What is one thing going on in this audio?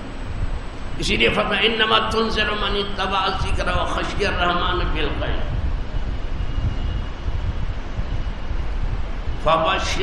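An elderly man speaks calmly, heard through a microphone.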